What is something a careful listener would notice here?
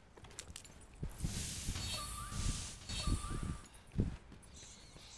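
Heavy blows land with deep thuds.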